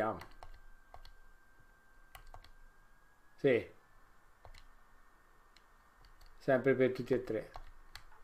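Short electronic menu blips sound from a video game.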